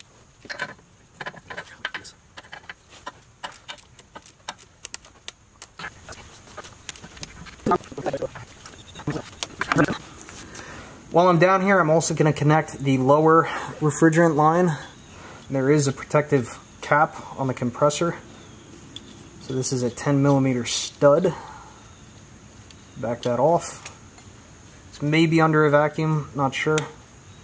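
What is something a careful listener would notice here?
Small plastic parts click and rattle under hands.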